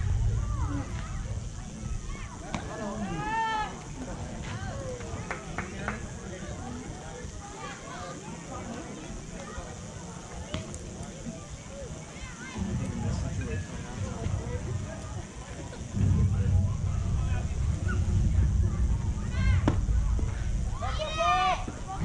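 Children and adults shout and cheer from nearby outdoors.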